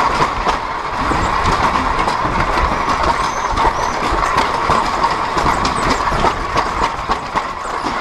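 Tyres rattle and bump over cobblestones.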